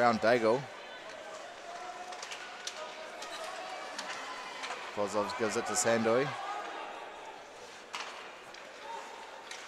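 A crowd murmurs in a large echoing rink.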